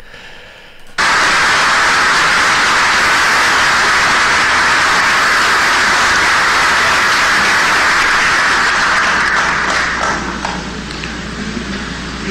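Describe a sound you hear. A large crowd applauds loudly in an echoing hall.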